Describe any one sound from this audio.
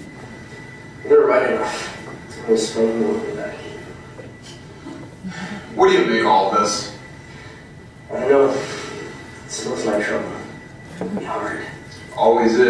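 Another young man replies in conversation.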